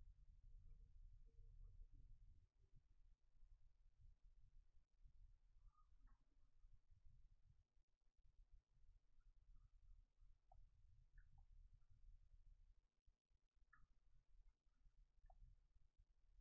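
Soft electronic blips sound now and then, quiet and short.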